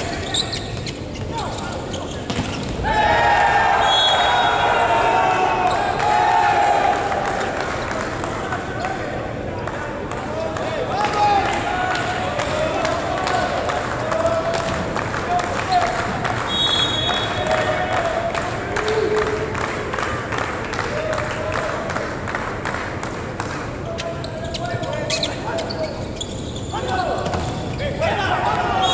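A volleyball thuds as players hit it in a large echoing hall.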